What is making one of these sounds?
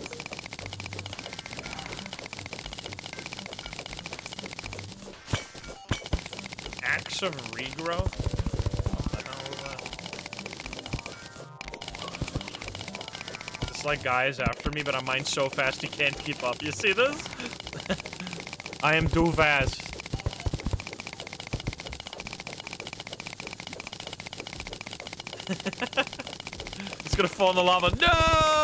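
Video game sound effects chime and blip.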